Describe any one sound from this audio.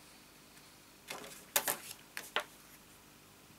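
Card stock rustles and taps as it is handled.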